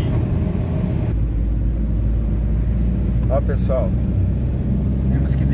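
A car engine drones steadily, heard from inside the car.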